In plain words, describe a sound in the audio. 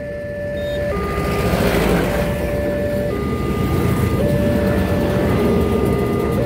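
A train rumbles past with rising noise.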